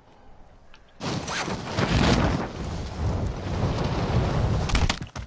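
Wind rushes loudly past a falling figure.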